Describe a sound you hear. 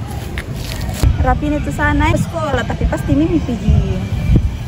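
A teenage girl speaks with animation outdoors.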